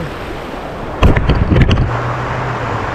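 Boots scrape and knock on loose rocks.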